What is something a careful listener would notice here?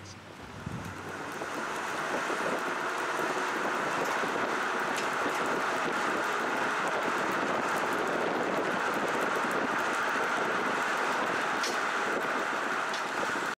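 Tyres roll steadily along a paved road with a rushing roar.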